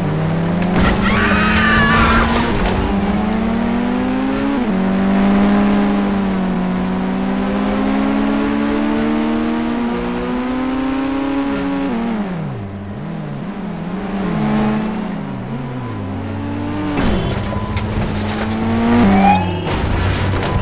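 A car engine revs up and down steadily.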